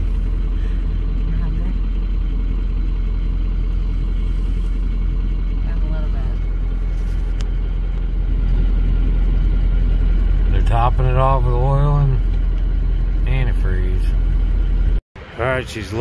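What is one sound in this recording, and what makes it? A vehicle engine hums low and steady.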